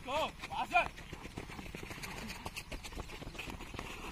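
Several people's feet thud on a dirt track as they sprint.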